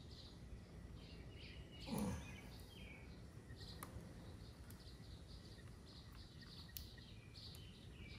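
Small plastic parts click and tap as hands work on a housing.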